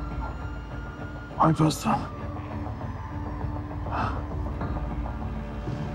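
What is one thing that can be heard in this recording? An older man groans weakly.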